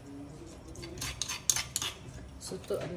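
A spoon scrapes and clinks inside a small jar.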